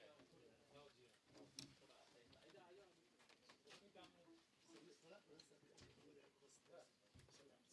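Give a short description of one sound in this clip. Men and women chatter in a murmuring crowd nearby.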